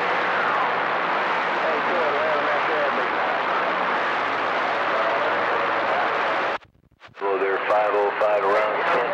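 Static hisses from a CB radio receiver.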